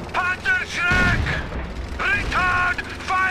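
A shell explodes.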